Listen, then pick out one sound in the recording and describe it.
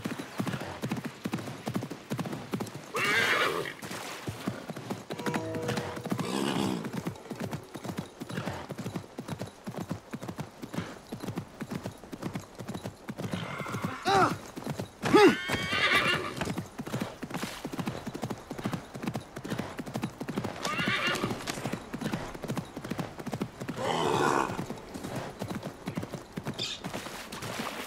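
A horse gallops with quick, steady hoofbeats on soft ground.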